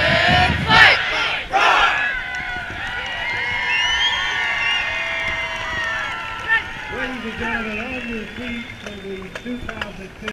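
A marching band plays brass instruments outdoors.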